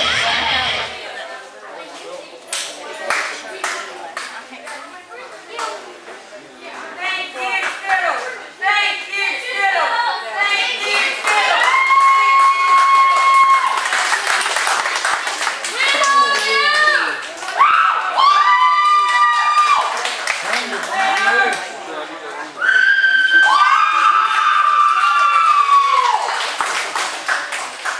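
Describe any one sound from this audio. A crowd claps in rhythm.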